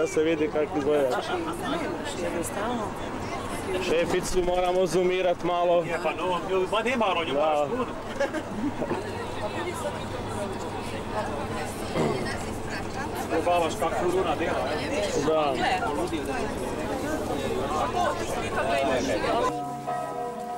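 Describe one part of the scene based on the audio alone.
Men and women chatter and laugh nearby.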